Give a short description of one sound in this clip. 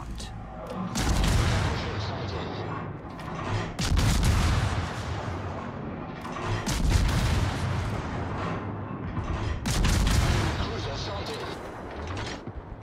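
Heavy naval guns fire in loud, deep booms.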